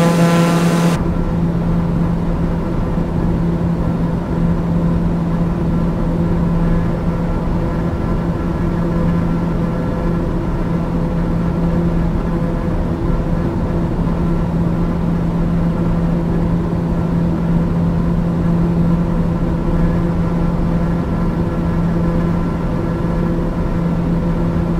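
An aircraft engine hums steadily, muffled inside a cockpit.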